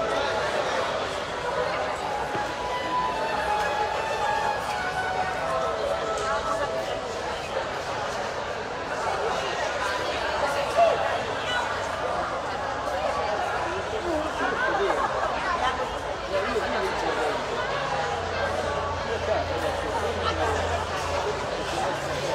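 People chat quietly in a large echoing hall.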